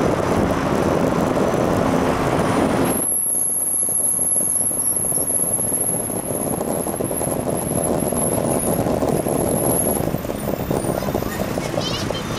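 Cars pass by on a busy street.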